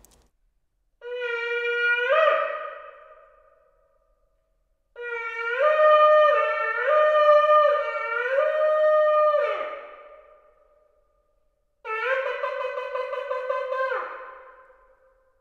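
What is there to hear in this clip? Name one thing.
A ram's horn blows loud, brassy blasts that rise in pitch.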